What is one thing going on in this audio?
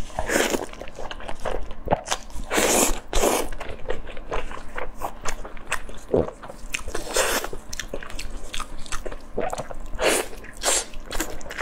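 A young woman chews and slurps food noisily close to a microphone.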